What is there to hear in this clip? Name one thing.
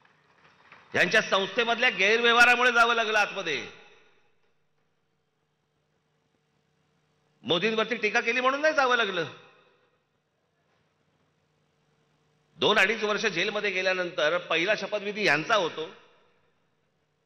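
A man speaks forcefully into a microphone, in short bursts with pauses.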